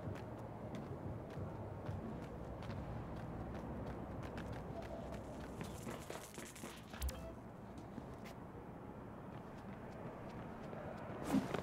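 Footsteps patter quickly on pavement as a person runs.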